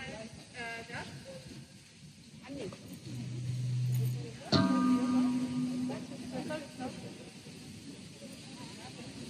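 A crowd of people talks in the open air.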